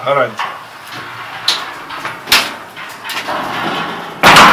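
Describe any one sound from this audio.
A metal gate clanks and rattles.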